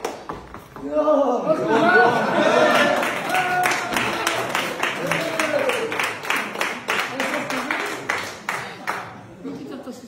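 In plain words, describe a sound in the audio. A group of men cheer and shout loudly.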